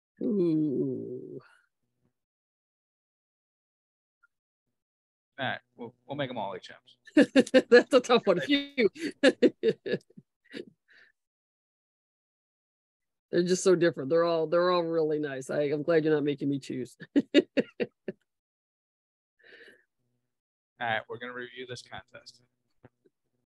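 A man talks calmly into a microphone.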